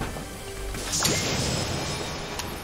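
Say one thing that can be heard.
A treasure chest opens with a bright shimmering chime.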